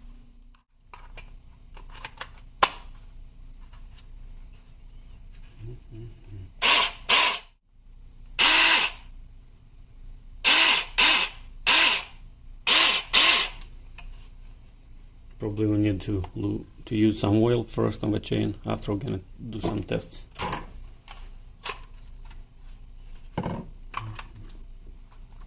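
Hands handle a plastic power tool with light knocks and clicks.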